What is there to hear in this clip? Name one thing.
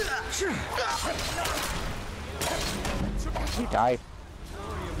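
A sword clashes and slashes in combat.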